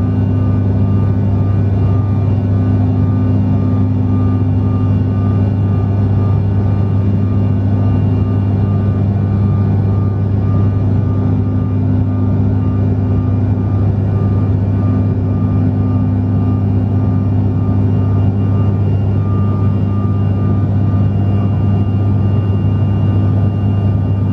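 Aircraft engines drone loudly and steadily from inside the cabin.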